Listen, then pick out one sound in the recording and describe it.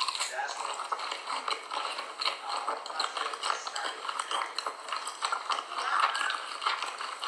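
A person chews a mouthful of dry cornstarch with crunchy, squeaky sounds close to the microphone.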